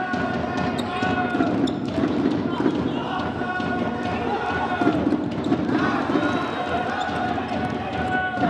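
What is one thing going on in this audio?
A ball thuds as it is kicked across the court.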